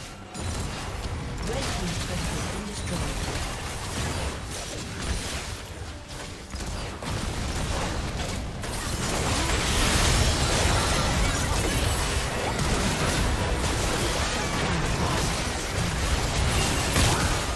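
Magic blasts and hits crackle and boom in a busy fight.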